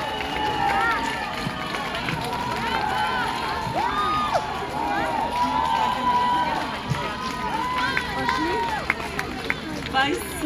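A woman sings into a microphone over a concert sound system.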